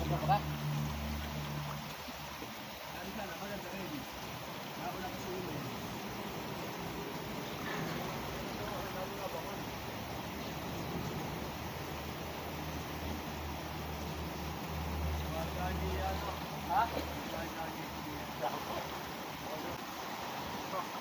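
A river flows and rushes steadily outdoors.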